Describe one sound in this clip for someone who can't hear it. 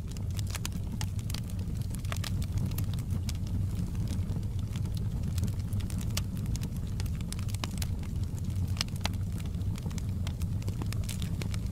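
Burning logs crackle and pop sharply.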